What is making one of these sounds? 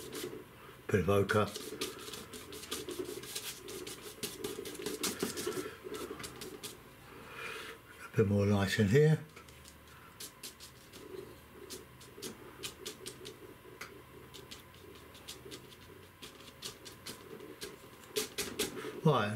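A brush dabs and scrapes on paper.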